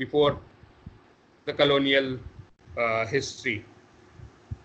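A man speaks over an online call in short bursts.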